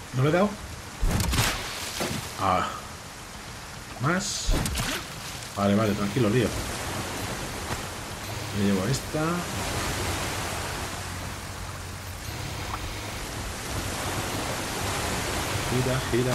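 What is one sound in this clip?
Heavy rain pours down onto water.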